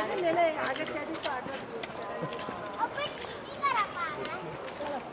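Several adults talk casually nearby outdoors.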